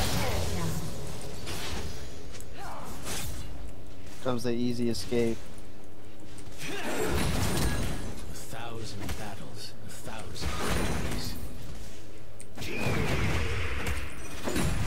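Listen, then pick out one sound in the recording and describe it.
Game spell effects whoosh and clash during a fight.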